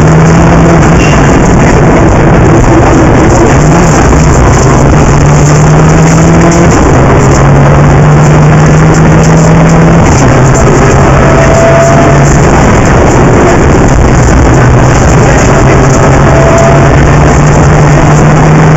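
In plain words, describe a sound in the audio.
A car engine roars loudly at high revs, shifting pitch as gears change.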